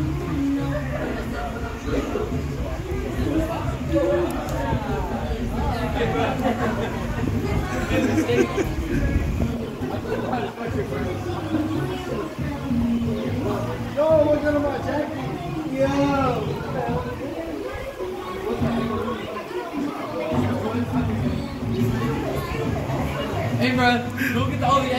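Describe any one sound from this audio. Children shout and chatter outdoors.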